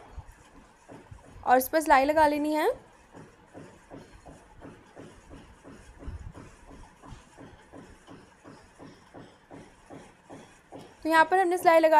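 A sewing machine stitches with a quick, light ticking.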